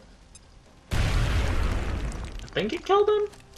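A grenade explodes with a loud rushing roar.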